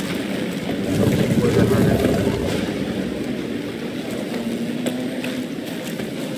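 A heavy stone block scrapes across a stone floor.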